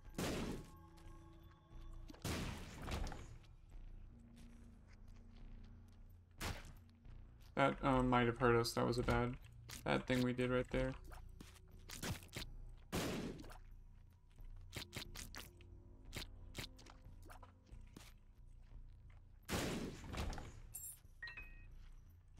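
Game sound effects pop and splat as shots hit enemies.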